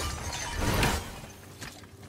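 A heavy axe strikes with a crack.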